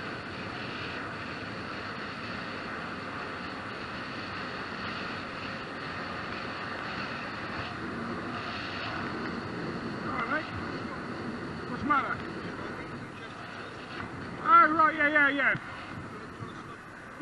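Wind rushes steadily past a moving motorcycle.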